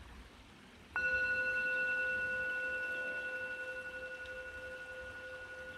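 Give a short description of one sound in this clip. A singing bowl is struck with a wooden mallet and rings out, slowly fading.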